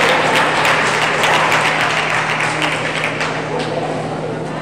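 Swimmers splash through the water in a large echoing hall.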